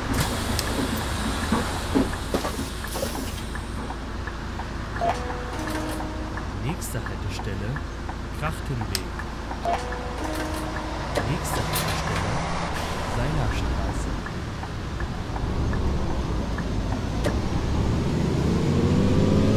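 A bus engine rumbles steadily, then revs up as the bus pulls away.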